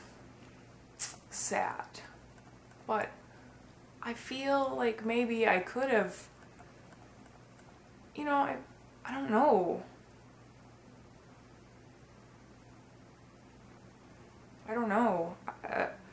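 A young woman talks calmly and close up, in short bursts with pauses.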